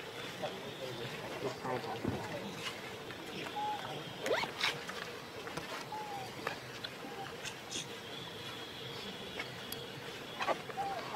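A baby macaque gives shrill, high-pitched squeals.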